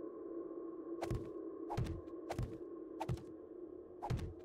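Heavy blocks thud into place, one after another.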